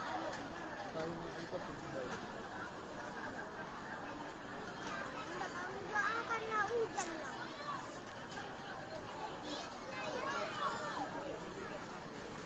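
A large crowd murmurs and shouts outdoors, heard from a distance.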